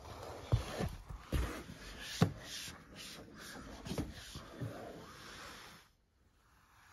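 Rain patters and drums on a car window.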